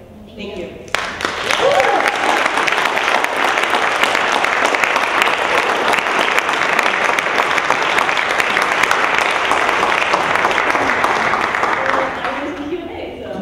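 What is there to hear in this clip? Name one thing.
An audience applauds loudly and cheers.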